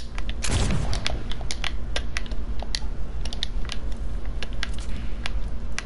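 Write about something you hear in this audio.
Building pieces clack rapidly into place in a video game.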